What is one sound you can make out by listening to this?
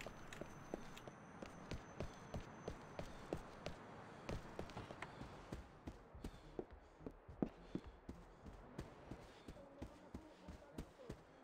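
Footsteps thud steadily on hard ground and stairs.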